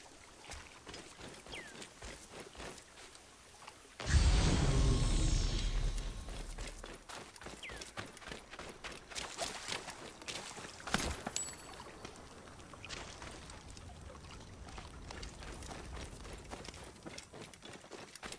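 Footsteps run over dry ground and grass.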